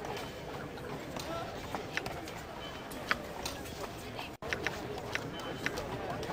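Short interface clicks sound.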